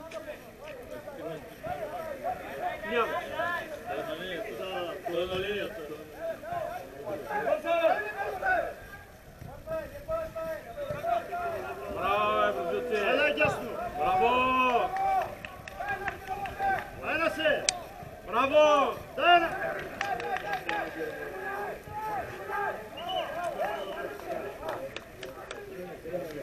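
Men shout across a large open sports ground, far off and echoing.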